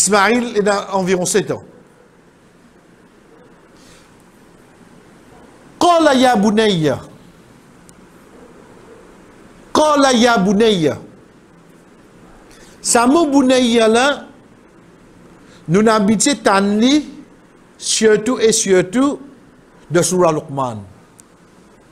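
A man speaks through a microphone in short, sing-song phrases with pauses between them.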